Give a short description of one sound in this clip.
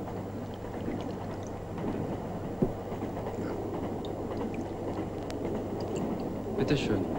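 A train carriage rumbles steadily while moving.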